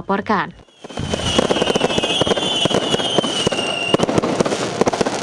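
Fireworks crackle and pop overhead outdoors.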